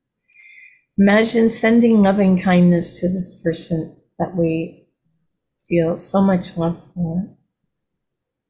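An elderly man speaks calmly and slowly over an online call.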